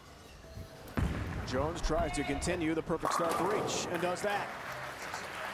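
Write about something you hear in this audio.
A crowd cheers and whoops loudly in a large hall.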